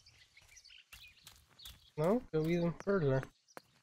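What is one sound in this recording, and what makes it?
Footsteps tread on a stone path.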